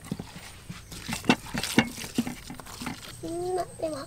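Hands squelch and slap against a raw fish.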